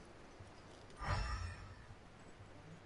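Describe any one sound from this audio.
A sudden whooshing blast sounds.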